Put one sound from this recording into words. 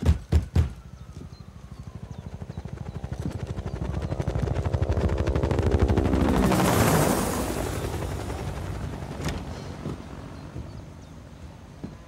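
A helicopter flies past, its rotor thudding louder and then fading away.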